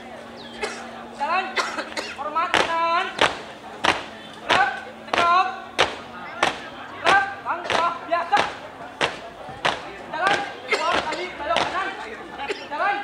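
Boots stamp on hard ground in rhythm.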